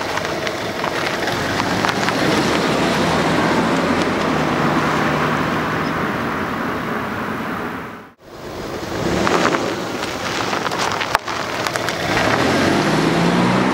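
A car drives past on a road, its engine revving.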